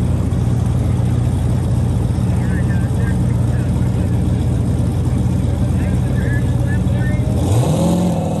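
A truck engine idles with a loud, deep rumble.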